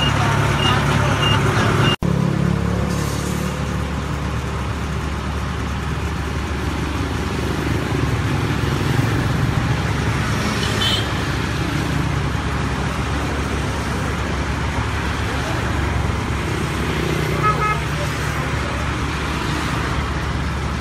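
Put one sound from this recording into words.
A large truck engine idles with a steady low rumble nearby.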